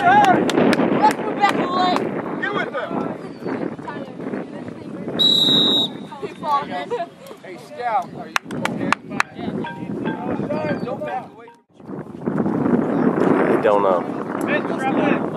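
Men and boys shout and call out outdoors.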